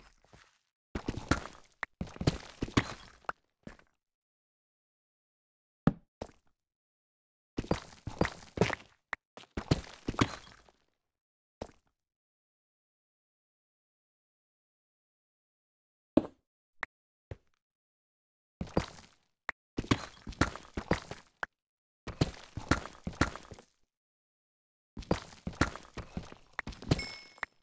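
A pickaxe chips rapidly at stone in bursts.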